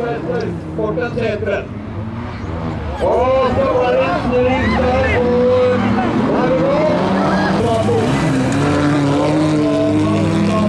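Several rally car engines roar and rev loudly.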